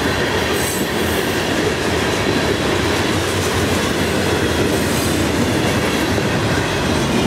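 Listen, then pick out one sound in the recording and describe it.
A freight train rumbles past close by, wheels clattering on the rails.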